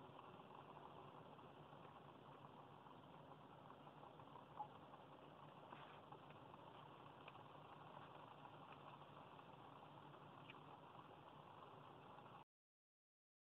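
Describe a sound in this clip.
A car engine idles steadily, heard from inside the car.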